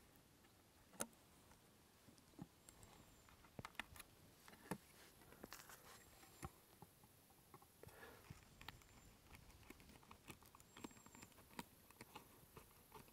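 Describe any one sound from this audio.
A knife scrapes and shaves wood in small, quiet cuts.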